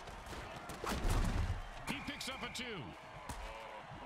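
Armoured players crash together with heavy thuds.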